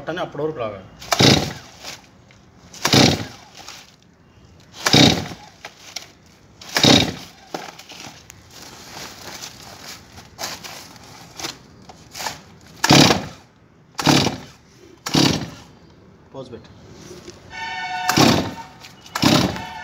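A chainsaw's starter cord is pulled hard again and again with a rasping whirr.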